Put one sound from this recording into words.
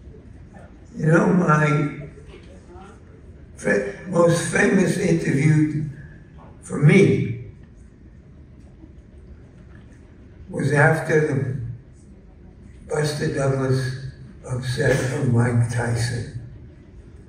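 An elderly woman speaks slowly into a microphone over loudspeakers in a large echoing hall.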